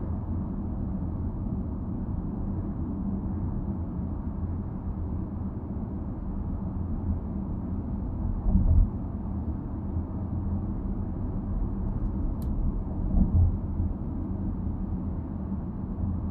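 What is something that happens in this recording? A car engine hums steadily with a low road rumble from inside a moving car.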